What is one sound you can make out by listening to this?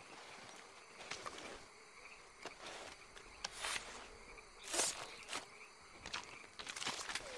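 A knife cuts wetly into an animal carcass with squelching sounds.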